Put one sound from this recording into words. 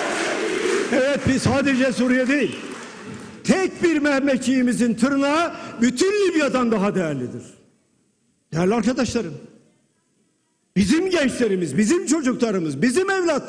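An elderly man speaks forcefully into a microphone, heard over loudspeakers.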